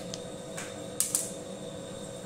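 A marker is set down on a table with a light tap.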